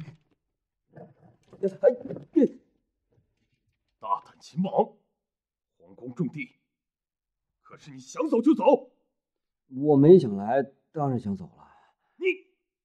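A young man answers quietly, close by.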